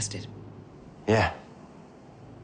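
A young man answers calmly, close by.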